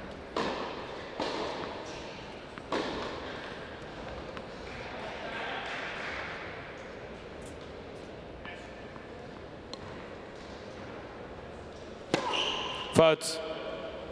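Tennis balls are struck with sharp pops that echo in a large indoor hall.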